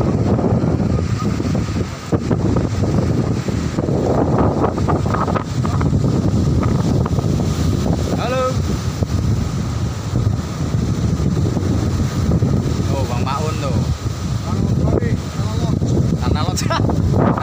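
Waves surge onto a rocky shore.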